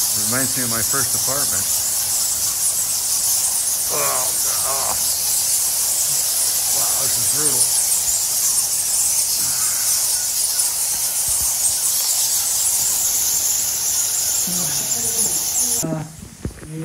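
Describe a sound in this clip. Many bats chitter and squeak overhead.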